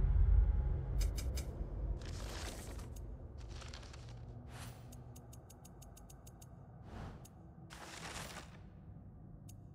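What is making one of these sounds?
Soft clicks tick in quick succession.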